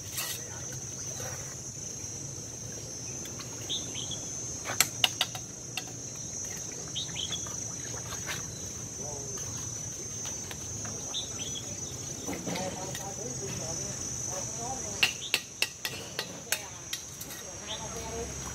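A trowel taps and scrapes on bricks.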